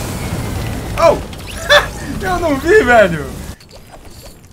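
A young man laughs through a headset microphone.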